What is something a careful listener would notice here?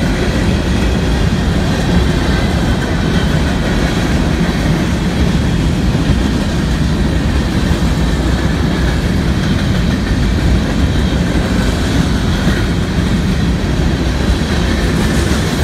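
A long freight train rumbles past close by, its wheels clattering on the rails.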